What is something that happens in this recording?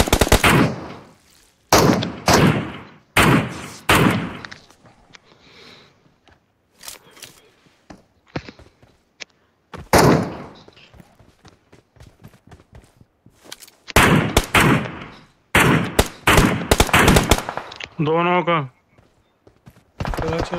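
Rifle shots crack loudly, one after another, and echo away.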